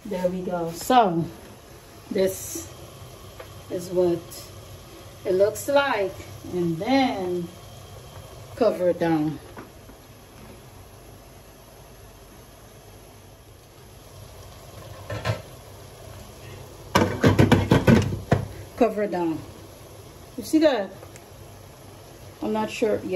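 A woman talks calmly close by.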